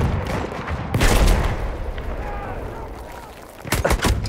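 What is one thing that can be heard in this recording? An explosion booms close by and rumbles away.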